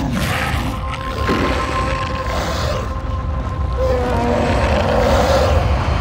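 A huge beast growls and roars with a deep rumble.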